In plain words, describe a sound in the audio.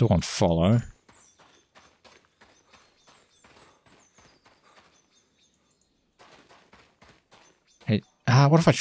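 Footsteps crunch softly on rocky ground.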